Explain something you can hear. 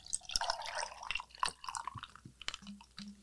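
Liquid pours and splashes from a bottle into a glass.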